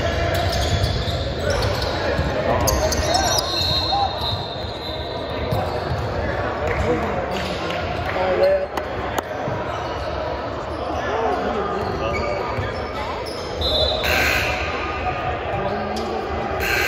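A crowd of young people chatters and cheers in a large echoing gym.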